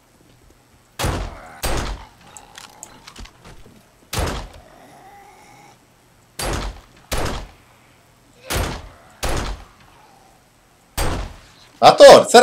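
Gunshots fire in sharp single bursts, echoing indoors.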